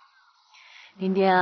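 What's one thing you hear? A young woman speaks warmly and close by.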